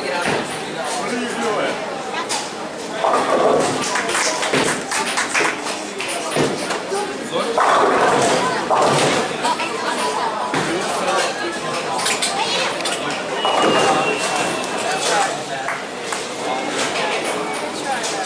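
Bowling balls rumble down lanes in a large echoing hall.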